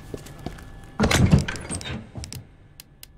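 A heavy metal lid opens with a loud clatter.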